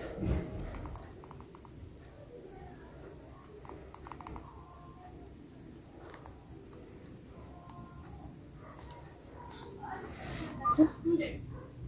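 Phone keys click softly as a thumb presses them.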